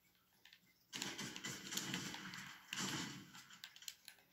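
Gunshots from a video game blast through a television loudspeaker.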